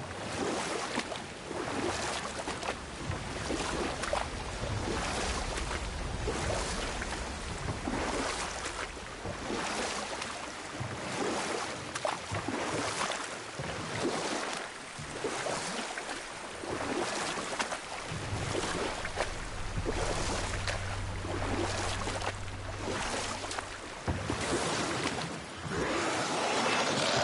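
Oars splash rhythmically through water as a boat is rowed.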